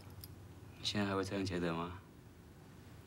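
A woman speaks softly, close by.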